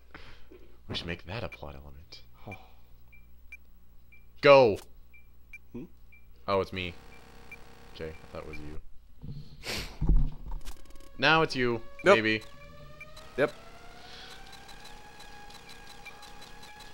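Electronic game music with a beeping tune plays softly.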